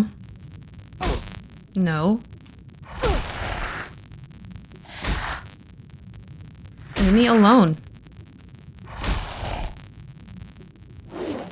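Magic spells whoosh and crackle in bursts during a fight.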